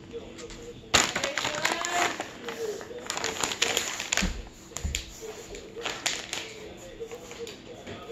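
A paper treat bag rustles and crinkles.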